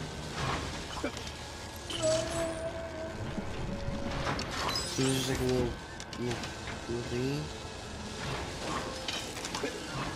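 Small coins jingle and chime in quick bursts.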